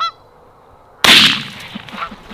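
A shotgun fires a single loud blast outdoors.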